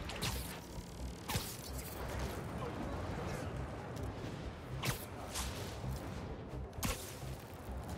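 Wind rushes past steadily.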